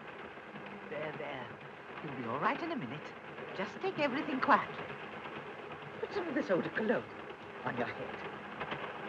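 A young woman speaks softly and dreamily.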